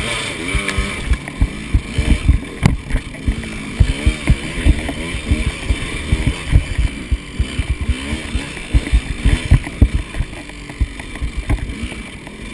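A two-stroke dirt bike engine revs up and down.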